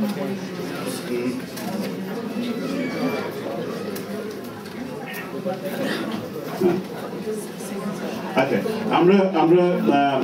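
A middle-aged man speaks calmly into a microphone, heard through a loudspeaker in an echoing room.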